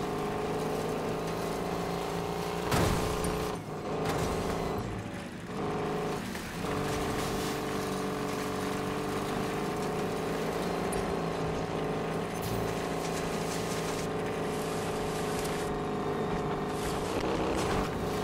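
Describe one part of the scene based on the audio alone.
Tyres skid and scrape on gravel.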